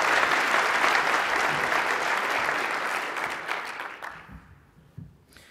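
An audience applauds in a large hall, then the clapping fades.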